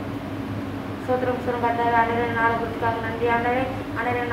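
A boy sings into a microphone.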